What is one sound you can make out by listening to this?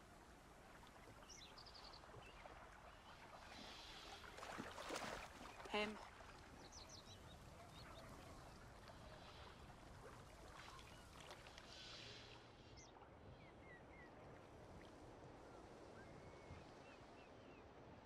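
A shallow stream flows and babbles steadily.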